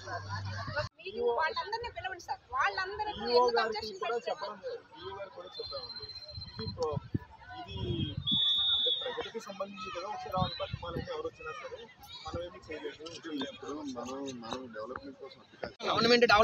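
Men and a woman talk outdoors.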